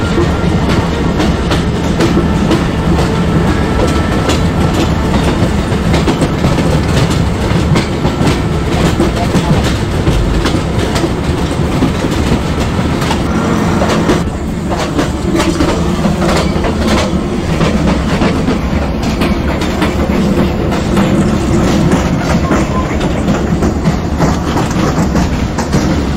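A passing train rumbles loudly close by.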